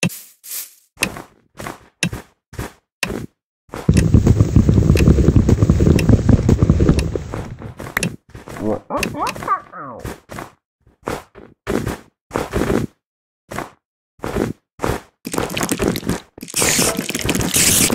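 Footsteps crunch on snow in a steady rhythm.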